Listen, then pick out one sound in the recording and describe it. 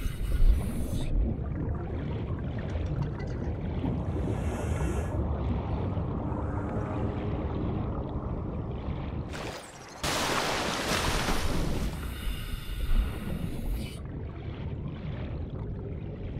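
Deep water rumbles and swirls in a muffled underwater hush.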